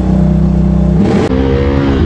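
An all-terrain vehicle engine revs up sharply.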